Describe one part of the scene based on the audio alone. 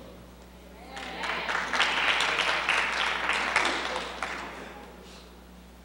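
An audience applauds in a large hall, then the clapping dies away.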